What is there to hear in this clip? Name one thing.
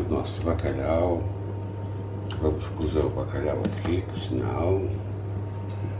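Food slides from a bowl into a pan.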